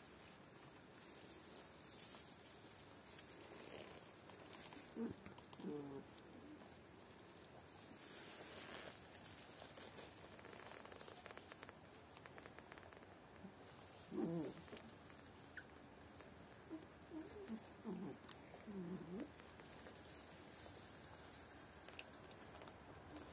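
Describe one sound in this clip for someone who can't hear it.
Puppies rustle in straw as they shuffle about.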